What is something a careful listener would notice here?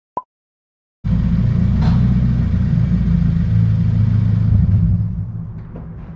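A car engine idles, echoing in a large concrete space.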